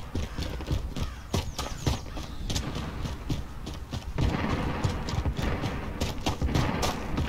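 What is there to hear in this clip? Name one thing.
Footsteps run across gravel.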